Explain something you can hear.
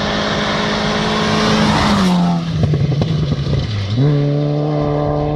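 Gravel crunches and sprays under a car's tyres.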